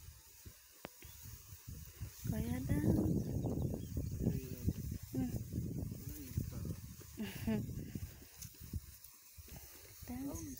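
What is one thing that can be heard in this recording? A pump sprayer hisses as it sprays mist over plants.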